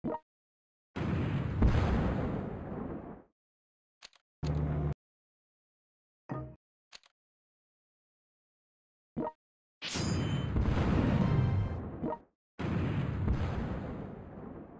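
Explosions boom and rumble in bursts.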